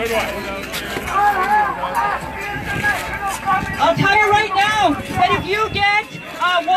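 A crowd of people chants and shouts outdoors.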